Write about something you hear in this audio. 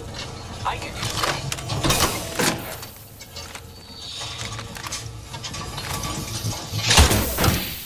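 Items click and clatter as they are picked up.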